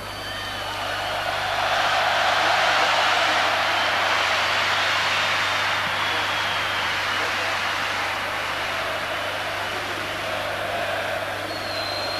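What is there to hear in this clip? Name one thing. A large stadium crowd roars and cheers steadily, swelling early on.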